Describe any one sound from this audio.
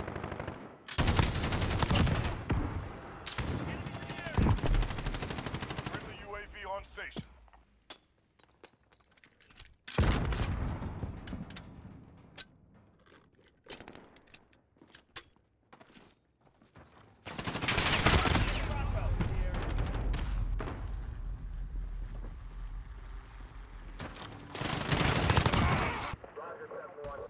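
Rapid rifle gunfire rattles in loud bursts.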